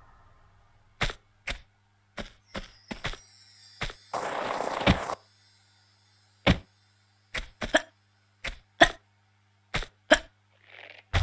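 Footsteps tap on a hard floor in a large, echoing space.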